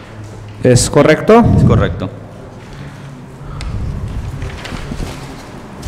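Paper rustles as a man lifts a sheet.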